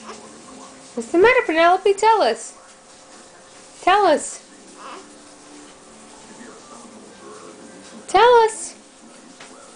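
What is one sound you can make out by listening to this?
A baby squeals and coos in short high bursts close by.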